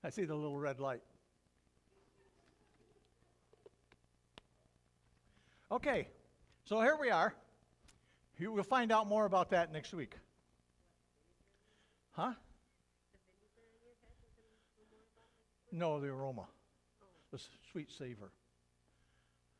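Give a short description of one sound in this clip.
An elderly man speaks with animation into a microphone, heard in a large echoing room, with pauses between phrases.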